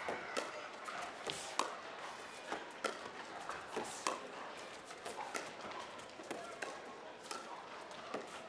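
Paddles pop sharply against a plastic ball in a quick rally.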